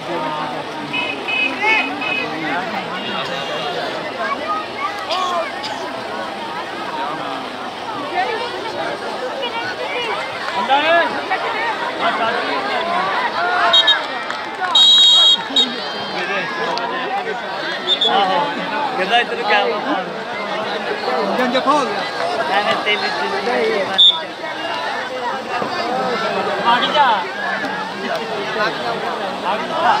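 A large outdoor crowd of men chatters and shouts throughout.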